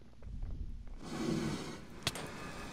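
A stone block crumbles and breaks.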